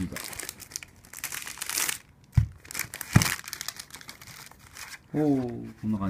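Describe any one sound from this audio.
Plastic film crinkles and rustles as it is handled.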